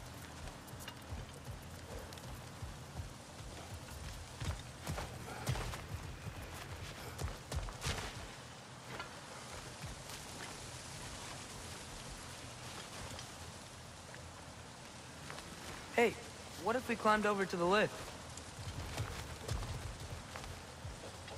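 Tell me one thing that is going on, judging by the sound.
Heavy footsteps thud on grass and stone.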